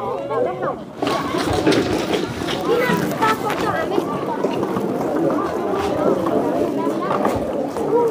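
Plastic chairs knock and clatter as they are carried.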